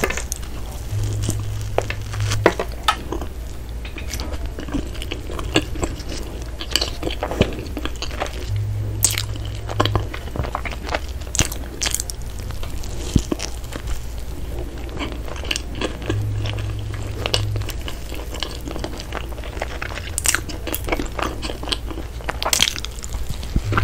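Crusty bread crackles and tears.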